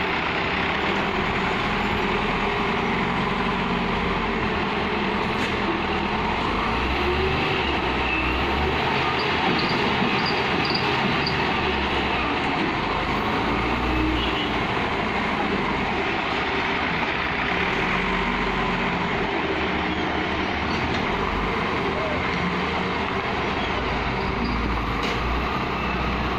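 A loader's diesel engine rumbles and revs.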